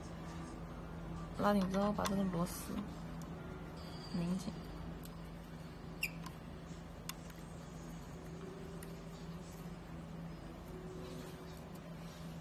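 A screwdriver scrapes and clicks against a metal brake part.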